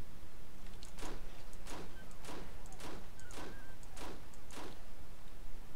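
A pistol fires a quick series of shots.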